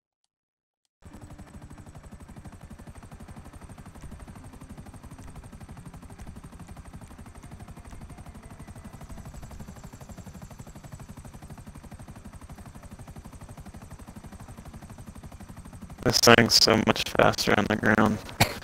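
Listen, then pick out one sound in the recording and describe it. A helicopter's rotor chops steadily and rapidly.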